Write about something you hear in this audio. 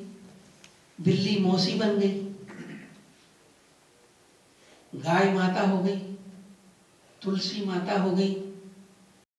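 An elderly man speaks calmly into a microphone, in short bursts with pauses.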